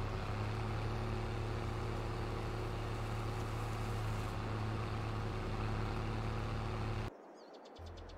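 A large harvester engine drones steadily.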